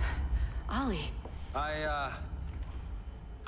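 A woman speaks softly, questioning.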